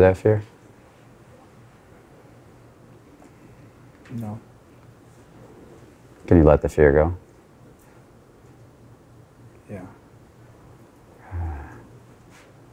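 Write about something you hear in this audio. A man speaks in short, hesitant bursts nearby.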